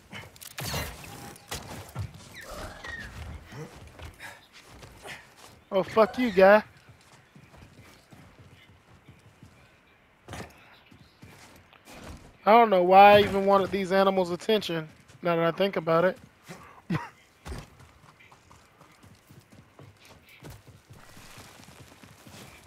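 Footsteps scuff over rock.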